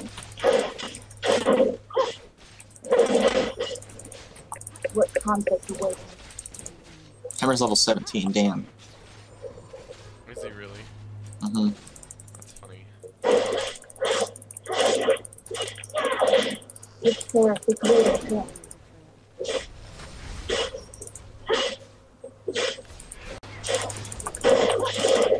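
Magic spells whoosh and crackle in a fantasy battle.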